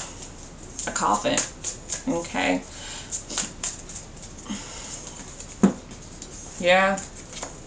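Playing cards are shuffled with quick flicking riffles.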